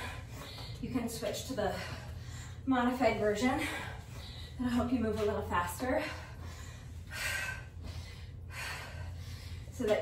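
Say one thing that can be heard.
Feet tap and scuff on concrete.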